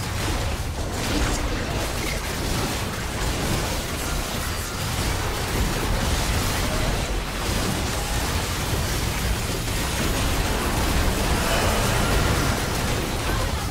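Magic blasts crackle and boom during a fierce battle.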